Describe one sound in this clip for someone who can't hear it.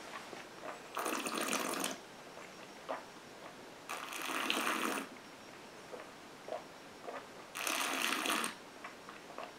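A man breathes out loudly through pursed lips several times.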